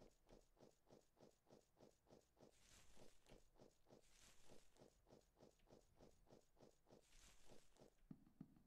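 Footsteps thud at a quick, steady pace.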